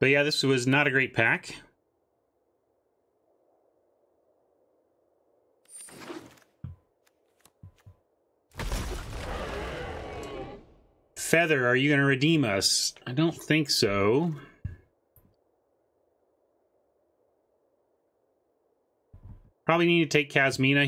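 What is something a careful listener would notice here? A man talks with animation, close to a microphone.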